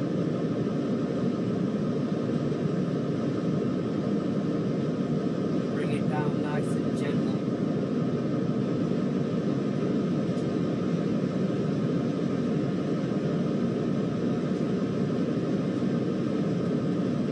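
Train wheels roll on the track.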